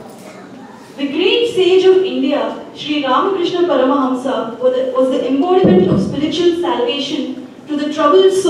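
A young woman sings into a microphone through a loudspeaker in an echoing room.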